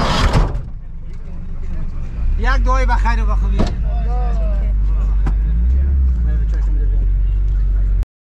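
A vehicle engine hums steadily from inside the cabin.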